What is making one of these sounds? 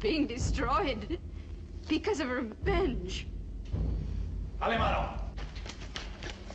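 A woman speaks tensely.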